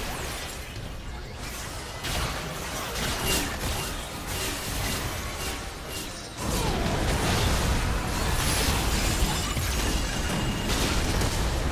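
Spell effects crackle and burst in a fast battle.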